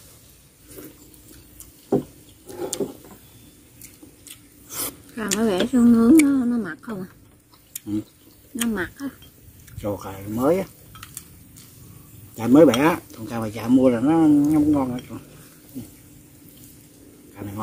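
Chopsticks click against a dish.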